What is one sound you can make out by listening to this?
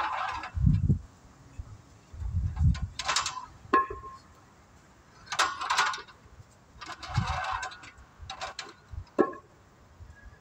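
Metal exercise equipment creaks and clanks in bursts.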